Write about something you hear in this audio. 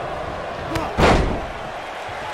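A wrestler slams onto the ring mat with a loud thud.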